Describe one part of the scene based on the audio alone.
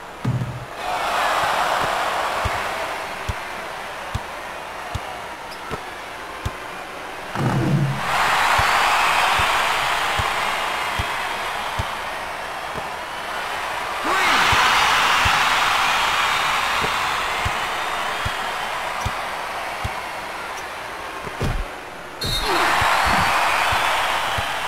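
A crowd roars in surges in a large arena.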